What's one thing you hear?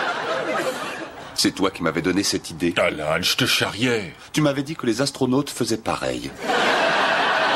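A man speaks calmly and dryly nearby.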